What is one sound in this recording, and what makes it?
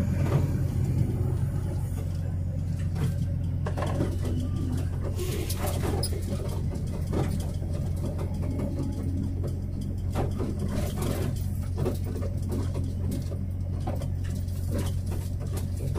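Tyres roll on asphalt.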